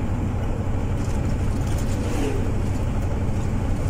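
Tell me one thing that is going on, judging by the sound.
An oncoming truck rushes past.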